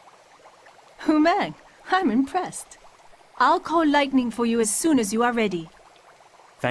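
A young woman speaks with animation, close and clear.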